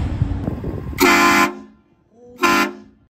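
A loud train horn blasts twice in short bursts.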